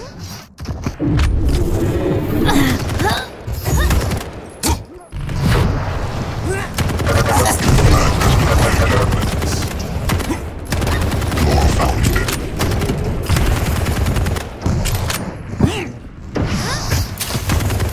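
A sci-fi gun fires.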